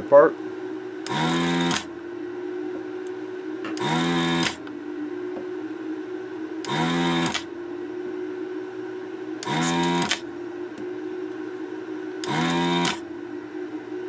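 A small hand-held electric tool buzzes in short, regular bursts.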